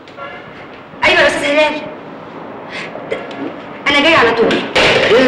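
A woman talks on a phone.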